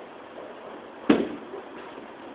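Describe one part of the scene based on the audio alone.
A bowling ball thuds onto the lane.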